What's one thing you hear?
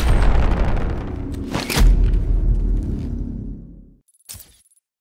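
A jet thruster blasts with a deep roar.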